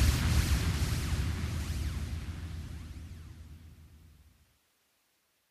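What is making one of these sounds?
Fireworks rumble and crackle, slowly fading away.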